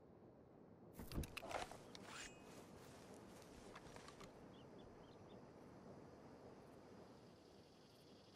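Grass and leaves rustle under a man crouching on the ground.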